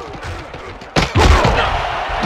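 Football players collide in a tackle with a heavy thud.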